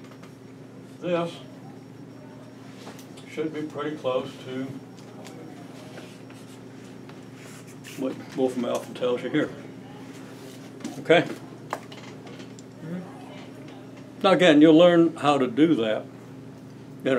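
An elderly man speaks calmly in short bursts with pauses.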